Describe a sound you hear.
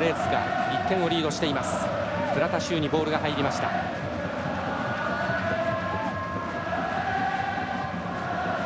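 A large stadium crowd chants and sings steadily outdoors.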